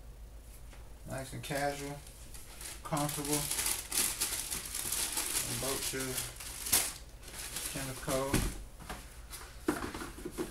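Cardboard boxes rustle and scrape as they are handled.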